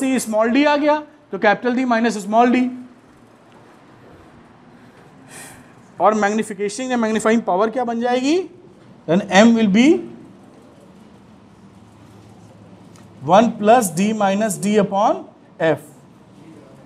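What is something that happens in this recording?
A man speaks calmly and clearly, as if lecturing.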